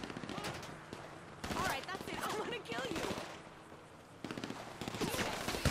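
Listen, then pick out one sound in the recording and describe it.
Footsteps crunch quickly on dry dirt.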